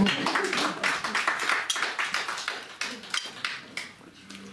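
People clap and applaud in a room.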